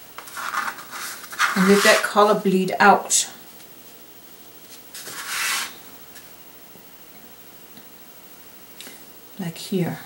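A brush dabs and strokes wet paint onto paper.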